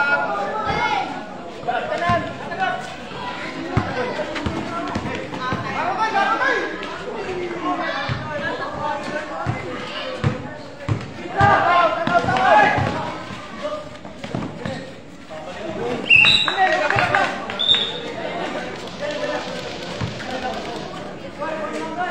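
A crowd of spectators talks and shouts.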